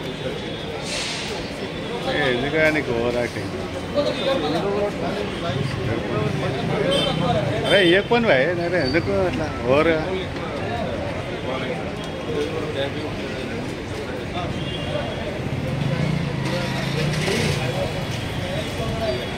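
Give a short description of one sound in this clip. A man speaks with animation close to a handheld microphone.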